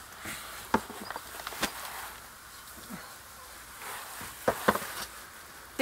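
A shovel scrapes on concrete.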